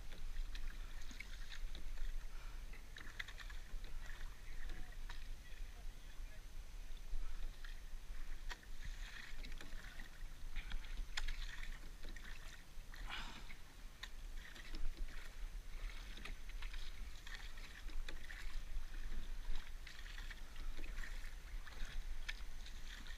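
Wind rumbles outdoors over open water.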